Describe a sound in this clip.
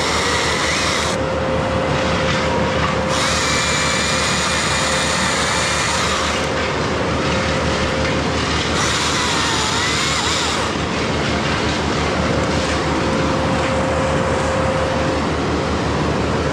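A chainsaw cuts through a tree trunk with a high whine.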